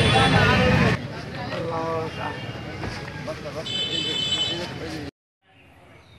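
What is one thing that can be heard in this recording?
A man's voice speaks nearby amid the crowd.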